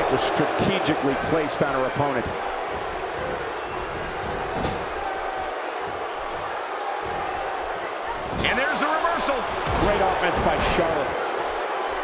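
Blows and slams thud sharply.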